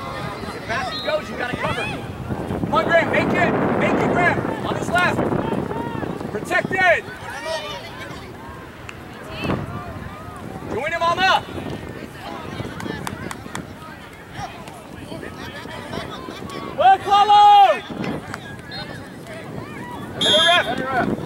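A crowd of adults and children shouts and cheers outdoors.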